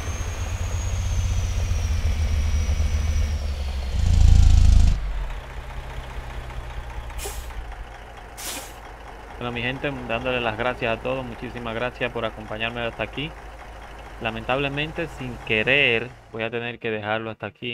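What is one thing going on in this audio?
A diesel semi truck engine rumbles.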